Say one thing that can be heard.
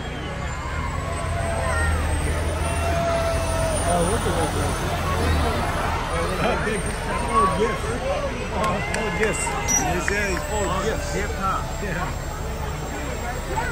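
A truck engine rumbles slowly past, close by.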